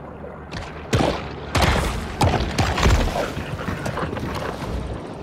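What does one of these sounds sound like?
Water splashes loudly as a shark thrashes at the surface.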